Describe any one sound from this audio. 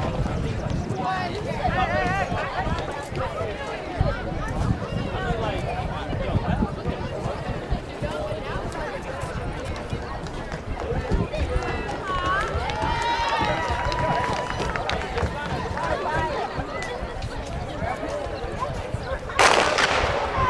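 A crowd of men and women chatter at a distance outdoors.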